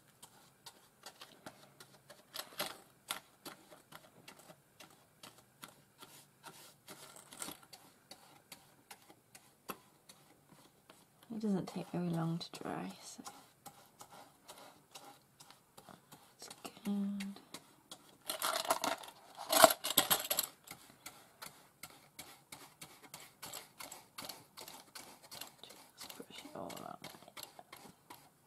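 A paintbrush brushes and taps against a box.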